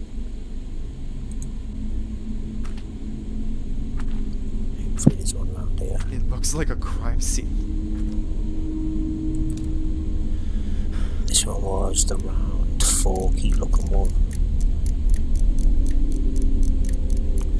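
A metal padlock clicks as its dials turn.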